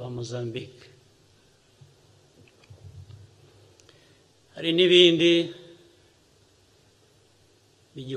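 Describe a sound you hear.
A man speaks calmly and slowly into a microphone.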